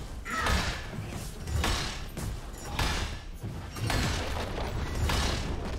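Magic spells burst and whoosh in a game battle.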